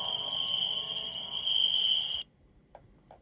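Eerie game music hums from a tablet's small speaker, then cuts off.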